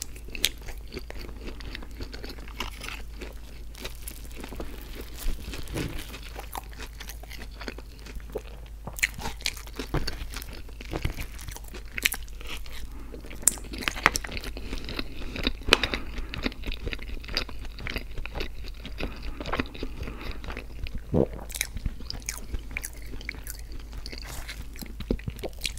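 A man chews food wetly and smacks his lips close to a microphone.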